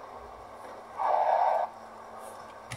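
Tyres screech briefly as a car skids.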